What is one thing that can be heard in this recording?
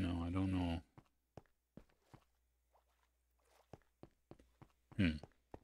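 Footsteps tap on a stone path.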